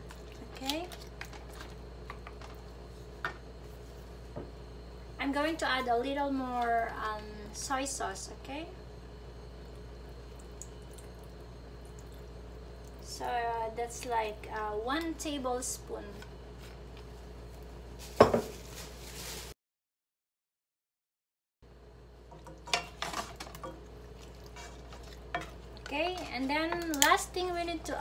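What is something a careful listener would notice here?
Wooden spatulas scrape and clack against a pan as meat is stirred.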